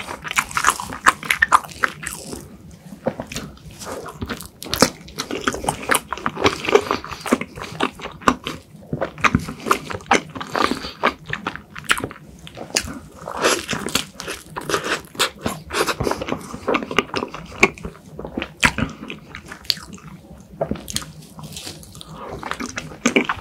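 A young man smacks his lips close to a microphone.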